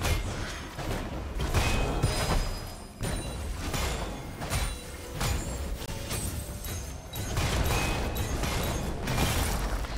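Video game sword hits clash in quick bursts.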